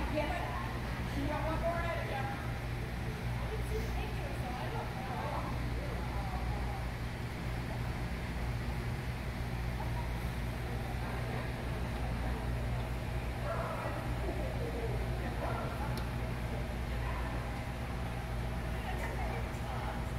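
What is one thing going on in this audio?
A woman calls out to a dog with animation in a large echoing hall.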